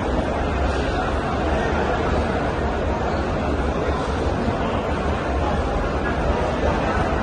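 A large crowd murmurs and chants together in an echoing hall.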